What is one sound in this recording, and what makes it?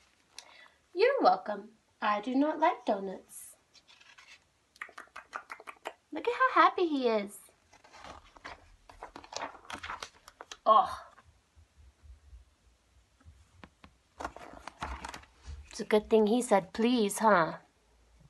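A young woman reads a story aloud with animation, close by.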